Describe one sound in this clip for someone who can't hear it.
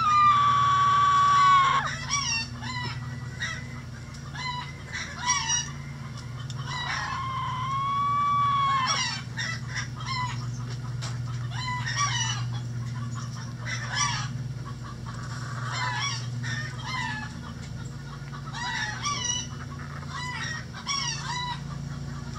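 Hens cluck and chatter close by.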